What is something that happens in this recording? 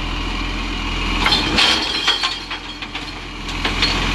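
Rubbish tumbles out of a tipped bin into a truck.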